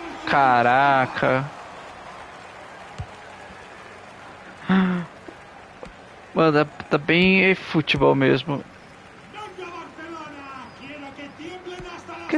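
A crowd murmurs and cheers steadily in a large stadium.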